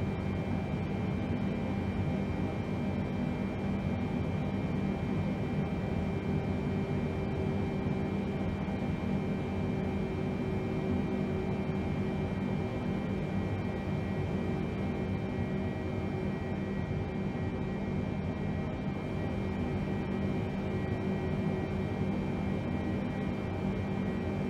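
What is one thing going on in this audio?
Aircraft engines drone with a steady low rumble.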